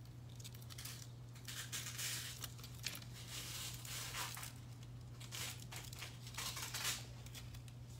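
Thin foil crinkles and rustles as it is handled.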